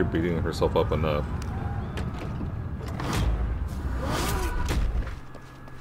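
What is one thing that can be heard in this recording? A heavy wooden door creaks and thuds open.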